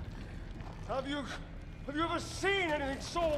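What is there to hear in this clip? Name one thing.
A man speaks with excitement and awe.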